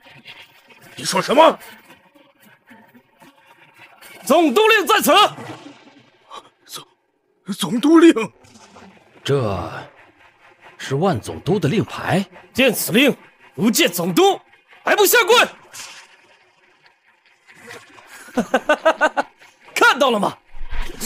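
A young man speaks and laughs, close by.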